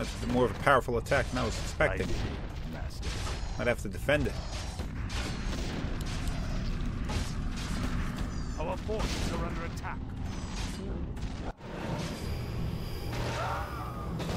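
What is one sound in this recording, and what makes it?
Weapons clash and spells crackle in a noisy game battle.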